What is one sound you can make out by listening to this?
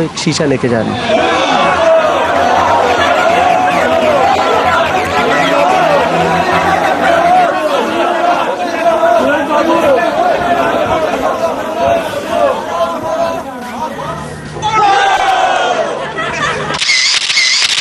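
A crowd of men shouts and jostles noisily close by.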